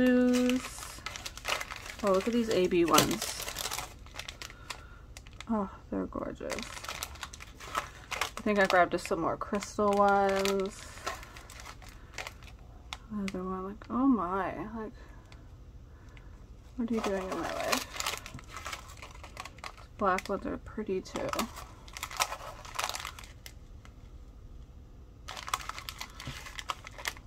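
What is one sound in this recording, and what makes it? Small plastic packets crinkle and rustle as they are handled.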